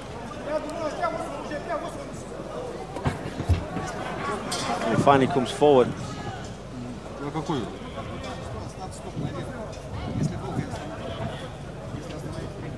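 A crowd shouts and cheers around an arena.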